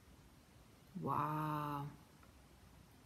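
A young woman makes a short drawn-out vocal sound.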